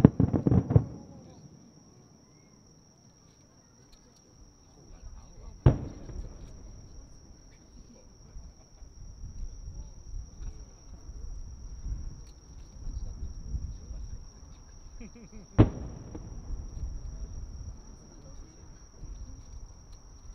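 Fireworks burst far off with loud booms that rumble and echo away.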